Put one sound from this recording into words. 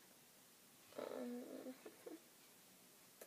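A young woman murmurs briefly close by.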